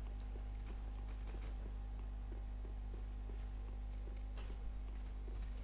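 Footsteps run quickly and steadily over stone and dirt.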